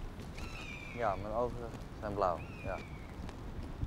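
A young woman speaks calmly outdoors.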